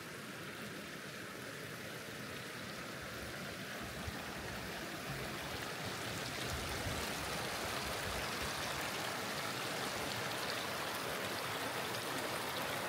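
Wind blows outdoors with low rumbling gusts.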